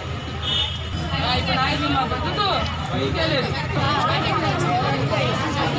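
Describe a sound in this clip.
A group of women recite aloud together in unison, close by.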